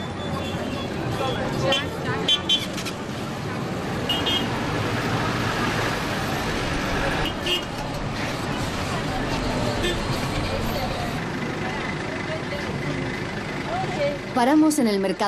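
A crowd chatters in a busy outdoor street.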